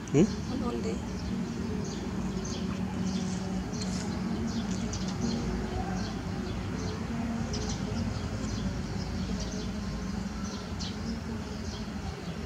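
A monkey smacks its lips softly.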